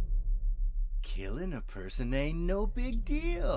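A young man speaks close by in a sly, menacing tone.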